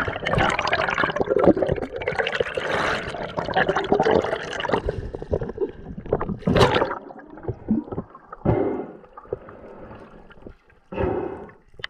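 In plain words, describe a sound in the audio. Air bubbles burble and rush underwater.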